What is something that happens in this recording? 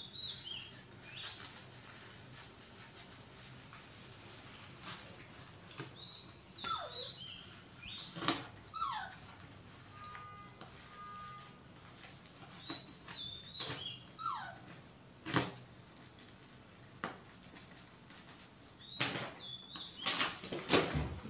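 A baby monkey squeaks in high chirps.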